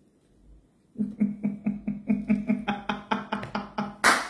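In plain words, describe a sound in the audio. A woman laughs loudly close to a phone microphone.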